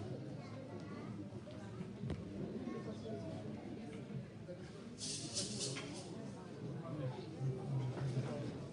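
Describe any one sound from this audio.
People in a crowd chatter at their tables.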